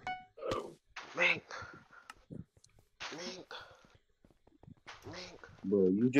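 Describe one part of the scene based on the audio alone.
A young man talks with animation into a microphone, close up.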